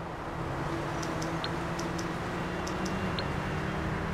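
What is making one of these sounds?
A phone menu gives short clicking beeps.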